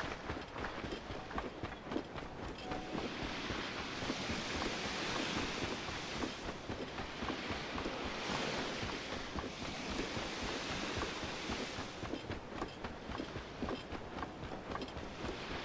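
Footsteps brush through grass at a steady walking pace.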